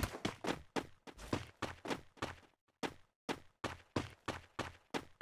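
Gunshots fire in rapid bursts, each ringing out briefly.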